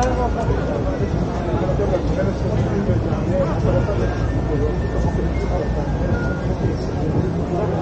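City traffic rumbles steadily in the background.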